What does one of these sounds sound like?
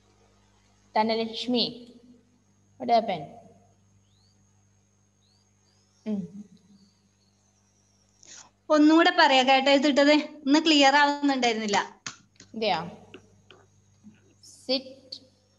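A young woman speaks over an online call.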